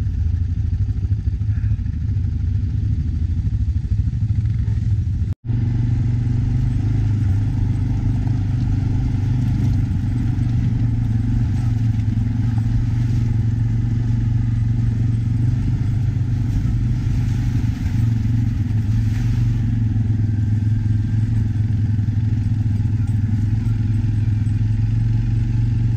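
A quad bike engine rumbles steadily close by.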